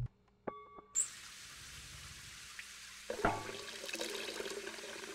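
Water sprays and splashes into a tub with a hiss.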